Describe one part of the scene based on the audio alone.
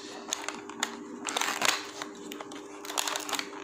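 A cardboard box lid rustles and clicks as it is opened.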